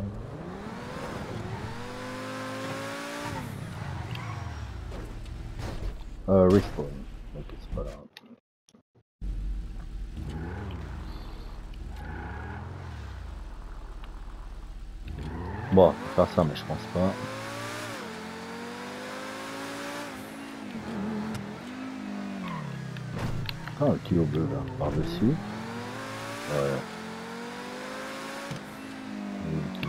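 A sports car engine revs high and shifts through its gears.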